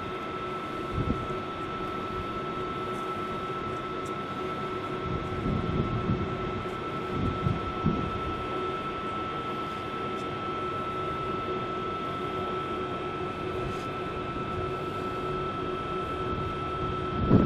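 Wind buffets outdoors in low gusts.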